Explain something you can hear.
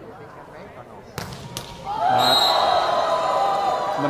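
A volleyball is struck hard.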